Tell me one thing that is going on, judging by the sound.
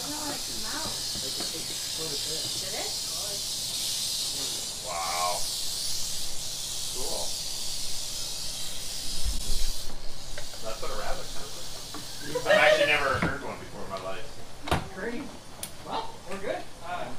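A man talks calmly and steadily, close by.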